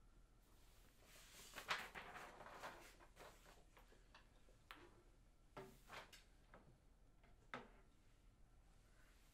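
Sheets of paper rustle as pages are turned.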